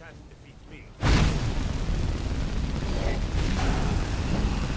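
Flames roar steadily from a spell.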